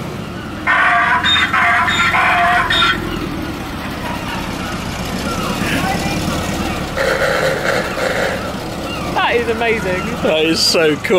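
A van engine rumbles as the van drives slowly away.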